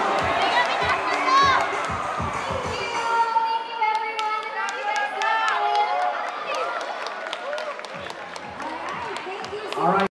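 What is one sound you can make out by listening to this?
A young woman sings into a microphone through loudspeakers in a large hall.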